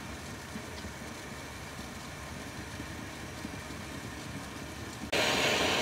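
Baked beans plop into a pot of stew.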